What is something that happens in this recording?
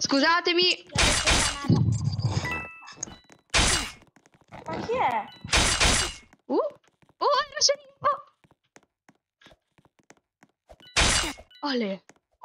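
A blade slashes through the air with a sharp swoosh.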